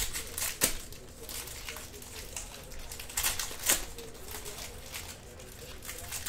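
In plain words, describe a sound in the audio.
A foil card pack crinkles and rustles as hands tear it open.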